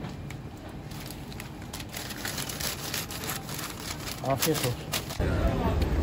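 Paper crinkles and rustles close by.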